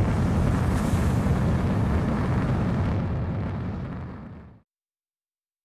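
A jet engine roars steadily, then fades away.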